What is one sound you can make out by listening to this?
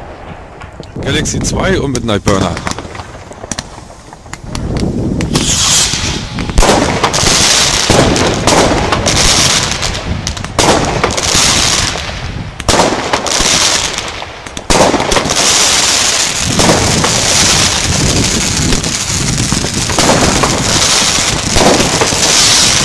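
Fireworks burst with sharp bangs and pops.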